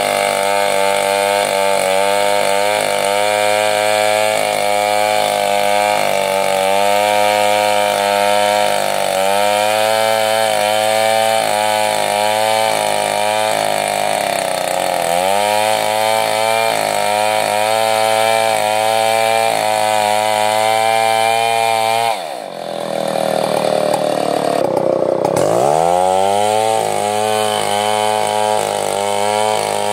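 A chainsaw roars as it cuts through wood, its engine dipping and revving up again now and then.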